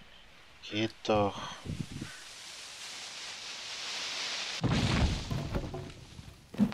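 A tree creaks, falls and crashes to the ground.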